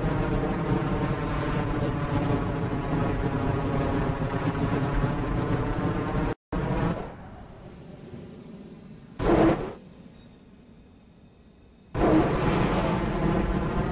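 A rocket engine roars with a steady, droning hum, cutting out and later roaring back.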